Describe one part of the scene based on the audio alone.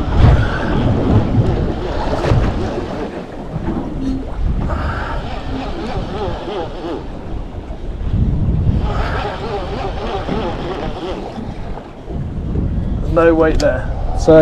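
A multiplier fishing reel is wound in.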